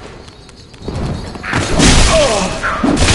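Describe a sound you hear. A sword strikes an enemy with loud clashing blows.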